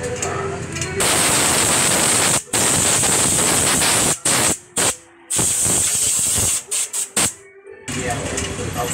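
Compressed air blasts from a hose in loud hissing bursts.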